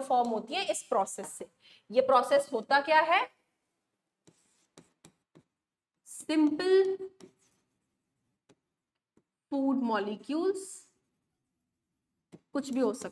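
A young woman speaks calmly, as if teaching, close to a microphone.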